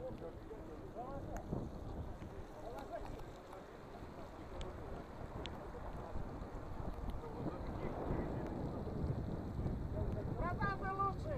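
Wind buffets a microphone outdoors with a steady low rumble.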